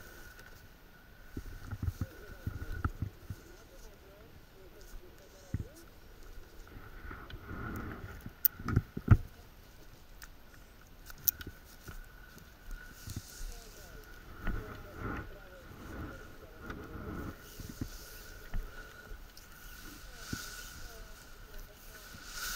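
Wind blows across open ground.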